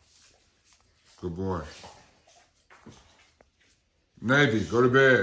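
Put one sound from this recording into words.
A dog's claws click softly on a hard floor.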